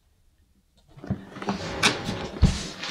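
A hard-shell guitar case knocks and rustles as it is lifted.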